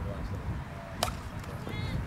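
A plastic bat cracks sharply against a ball.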